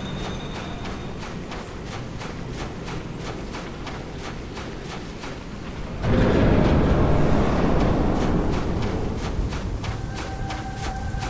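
Insect-like creatures scuttle and click nearby.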